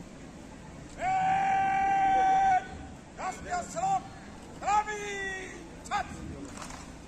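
A man shouts drill commands loudly outdoors.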